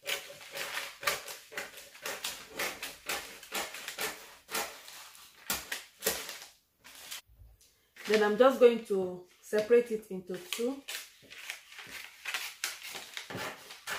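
Scissors snip and crunch through stiff paper.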